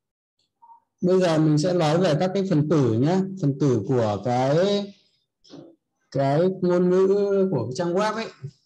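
A young man speaks calmly and close to a microphone, explaining.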